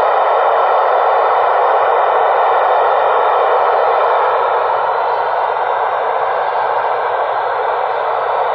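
Static hisses steadily from a radio receiver's speaker.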